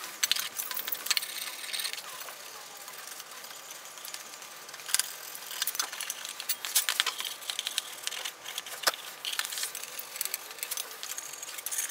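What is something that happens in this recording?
A metal scraper scrapes and rasps against a metal frame.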